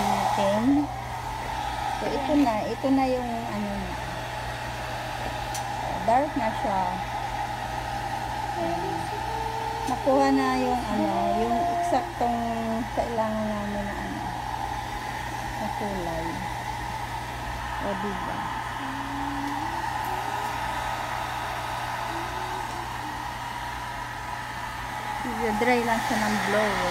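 A hair dryer blows with a steady whir.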